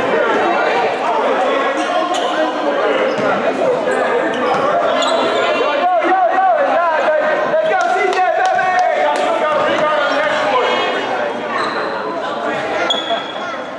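Several people talk and call out in a large echoing hall.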